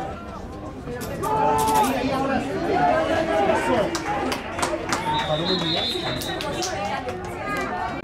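A crowd of spectators cheers loudly outdoors.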